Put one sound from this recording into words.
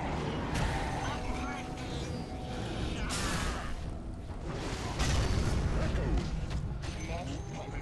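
Weapons clash and clang.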